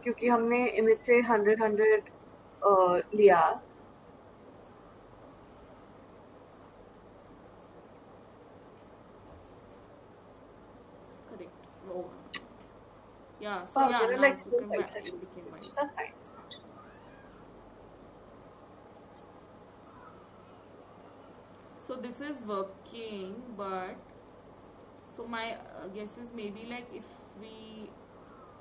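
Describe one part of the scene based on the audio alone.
Women speak calmly over an online call.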